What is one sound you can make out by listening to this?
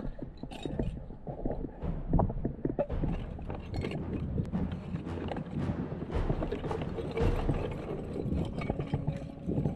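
Glass bottles clink together as they are put into a bag.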